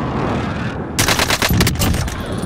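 Rapid gunshots crack loudly from a rifle.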